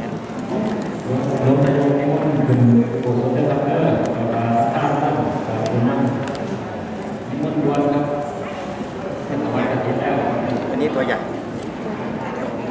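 A group of men chant together in low, steady voices.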